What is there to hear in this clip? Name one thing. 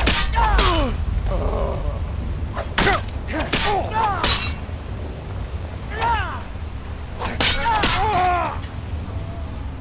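Flames burst and roar in short blasts.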